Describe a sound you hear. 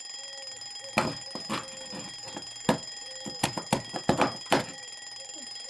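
A hand knocks and fumbles a small plastic clock against a table.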